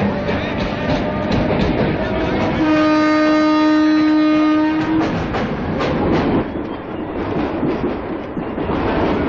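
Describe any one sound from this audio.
A train rumbles and clatters along the tracks.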